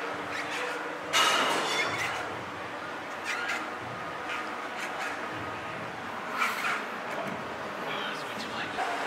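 Weight plates clank against a gym machine.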